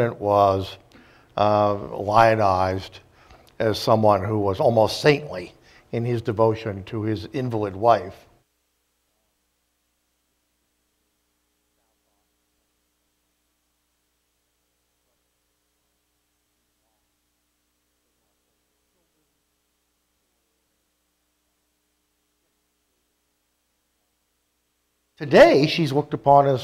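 A middle-aged man speaks calmly and deliberately into a microphone.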